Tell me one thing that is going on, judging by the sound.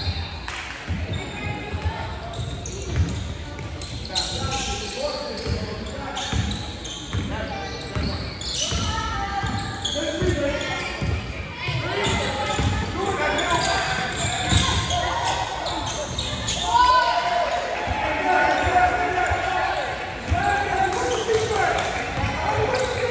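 Young players and onlookers call out and shout in the echoing hall.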